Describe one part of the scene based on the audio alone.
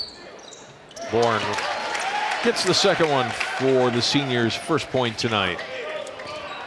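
A crowd of young people cheers and chants loudly in an echoing gym.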